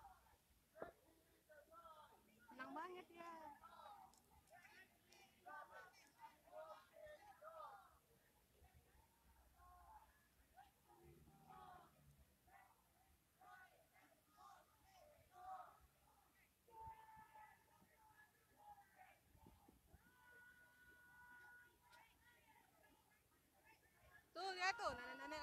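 A crowd of men and women talks outdoors.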